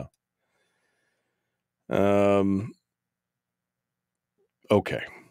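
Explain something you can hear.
An older man speaks into a microphone, up close, holding out a long drawn-out word.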